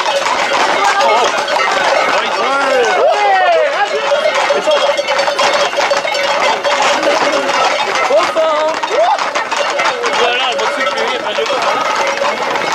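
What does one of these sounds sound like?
Men shout and call out excitedly nearby, outdoors.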